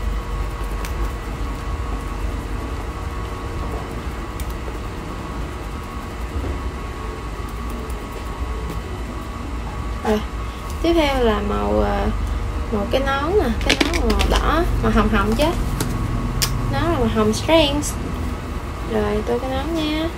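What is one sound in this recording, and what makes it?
A marker scratches softly on paper.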